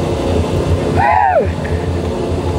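A young woman calls out close by with a brief rising and falling cry.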